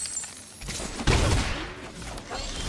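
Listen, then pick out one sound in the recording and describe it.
A deep magical impact booms.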